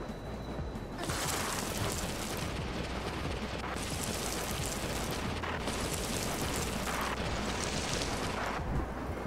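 A wheel rolls fast along a road with a rushing hiss that surges in waves.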